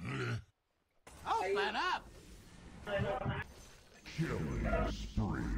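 Game spell effects crackle and weapons clash in a fight.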